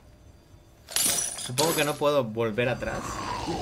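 Bolt cutters snap through a metal chain with a loud clank.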